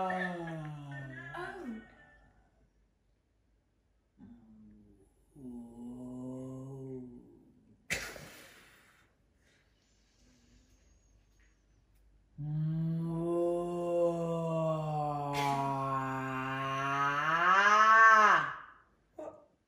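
A woman sings a long, rising note up close, voice warbling as it climbs.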